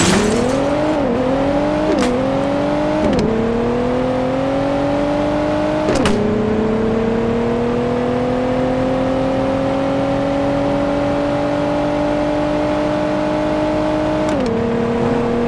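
A car engine revs high and shifts up through the gears.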